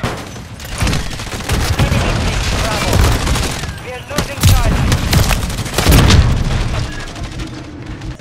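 Gunfire and explosions boom and crack in rapid bursts.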